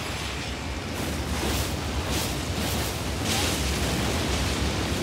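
Flames roar and crackle in a fiery blast.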